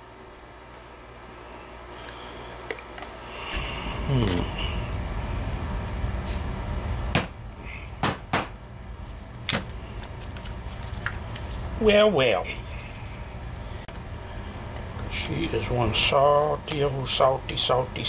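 Metal parts clink as they are handled.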